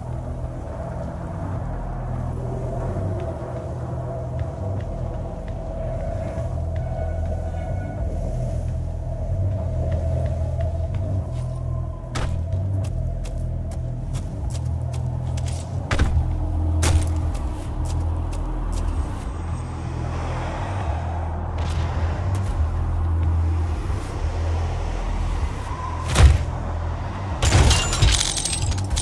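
A deep, steady rumble drones throughout.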